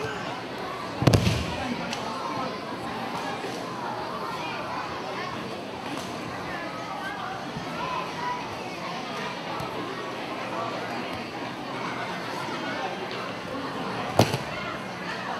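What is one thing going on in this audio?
A body slams onto a mat with a heavy thud.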